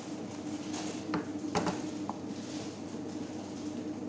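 A spoon stirs thick lentil soup in a pot.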